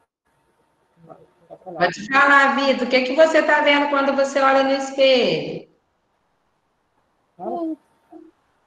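A young woman speaks calmly into a microphone over an online call.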